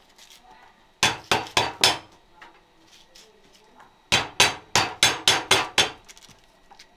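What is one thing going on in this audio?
A knife cuts through corn kernels in quick bursts.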